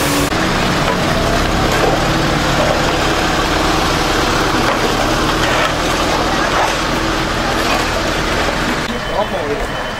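Shovels scrape wet mud across pavement.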